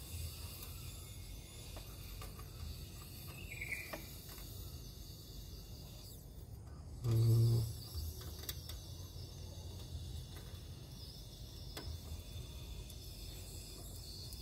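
A screwdriver scrapes and clicks against a plastic screw.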